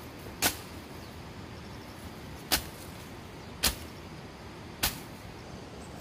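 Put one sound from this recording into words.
A machete chops sharply into plants several times.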